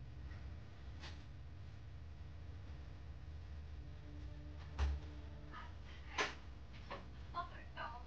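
Small buttons click softly as they are pressed.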